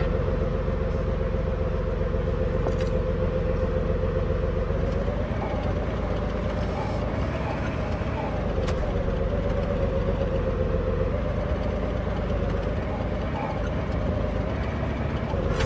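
A tank engine rumbles and drones steadily.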